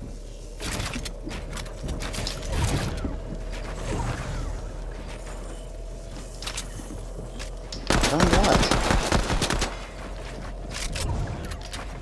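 Wooden walls and ramps clatter into place in quick bursts.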